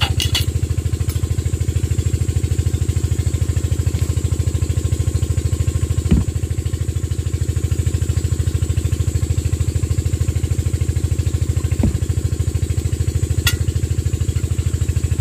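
A diesel engine idles close by with a steady rapid chugging.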